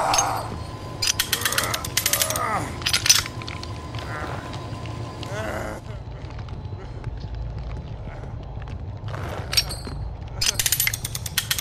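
A metal trap clanks and clicks as it is set.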